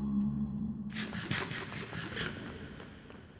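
A game character eats with quick crunchy munching sounds.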